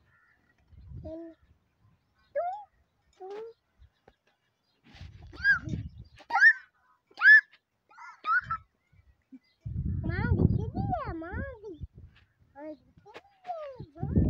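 A peacock calls nearby with loud, shrill, wailing cries.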